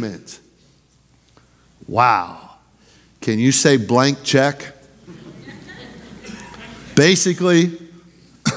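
A middle-aged man preaches with animation through a microphone, in pauses, in an echoing hall.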